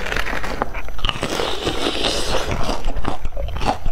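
A crisp pastry crunches loudly close to a microphone.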